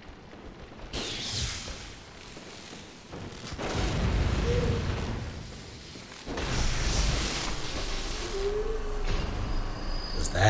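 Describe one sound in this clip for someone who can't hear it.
A crackling electric weapon hisses in loud bursts.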